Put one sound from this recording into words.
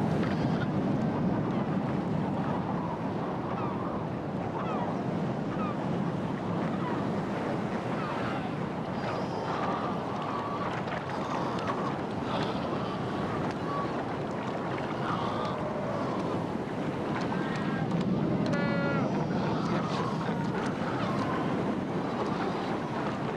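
Heavy surf crashes and churns against rocks.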